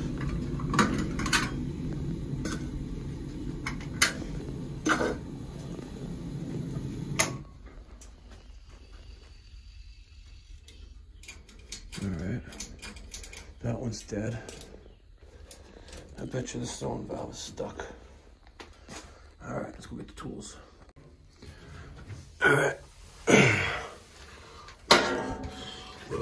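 Fingers click and tap against a small metal control box.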